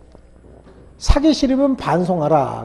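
A man speaks with animation through a clip-on microphone, close by.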